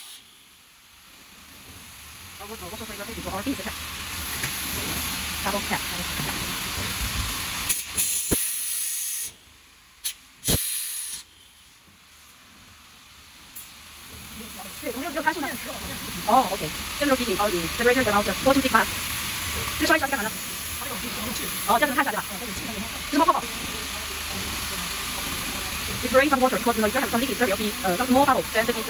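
Compressed air hisses steadily from a nozzle.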